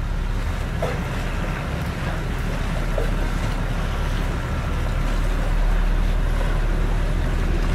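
Small waves slap against a boat's hull.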